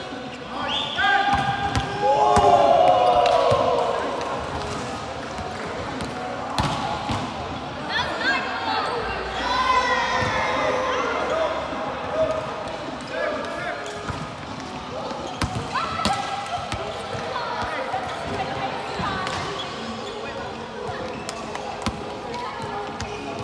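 A volleyball thumps off players' arms and hands.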